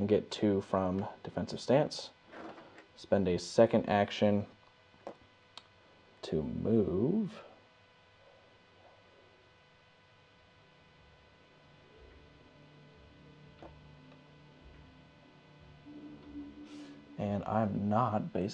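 Small plastic pieces tap and slide on a tabletop.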